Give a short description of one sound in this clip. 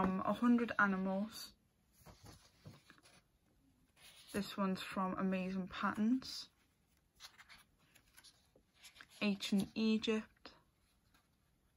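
Paper pages rustle as they are turned.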